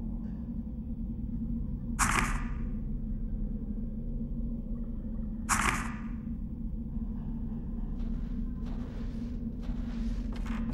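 A low, eerie drone hums steadily.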